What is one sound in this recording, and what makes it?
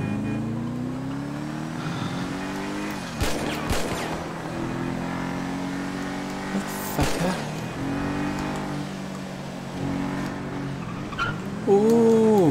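A car engine drones and rises in pitch as it speeds up and shifts gears.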